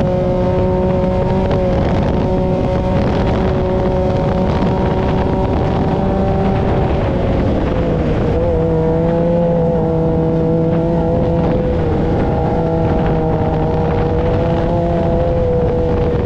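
Tyres rumble and hiss over soft sand.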